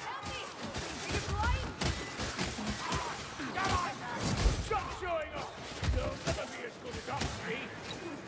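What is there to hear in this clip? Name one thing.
Blades slash and thud against bodies in a melee fight.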